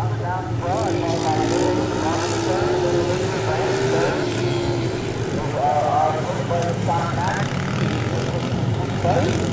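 Dirt bike engines whine and rev loudly, rising and falling in pitch.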